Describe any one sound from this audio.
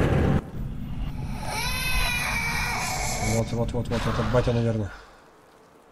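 A ghostly figure lets out an eerie, wavering wail.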